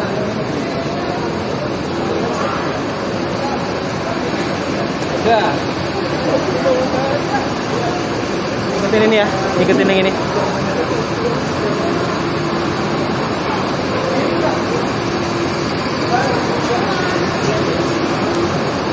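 A crowd of people chatter in a large echoing hall.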